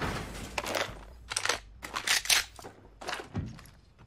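A shotgun is picked up with a metallic clatter.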